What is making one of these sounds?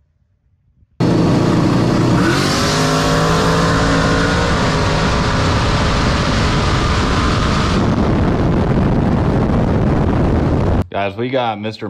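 A race car engine roars loudly up close, rising in pitch as the car accelerates hard.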